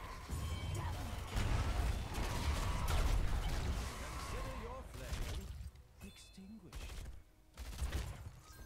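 Game combat effects crackle and zap.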